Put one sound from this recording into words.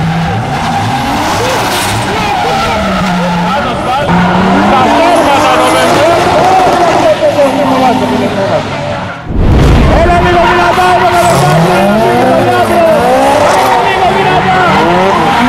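Tyres screech and squeal on the pavement.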